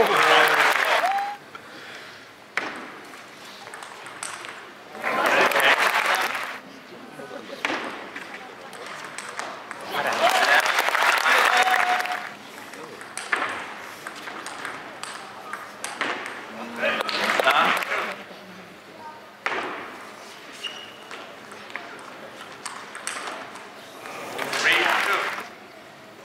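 A crowd cheers and applauds in a large arena between points.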